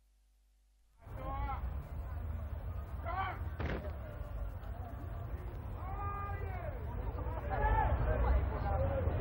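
A large group of women and men sing and call out together outdoors.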